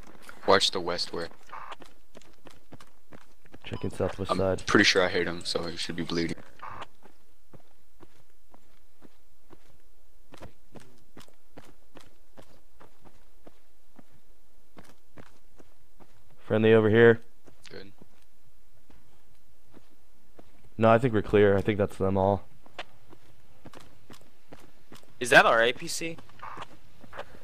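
Footsteps crunch steadily on gravel and concrete.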